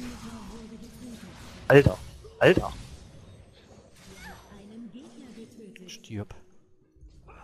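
Game combat sounds clash and zap.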